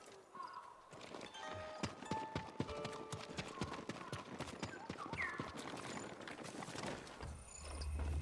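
Armored footsteps crunch and clatter on stone.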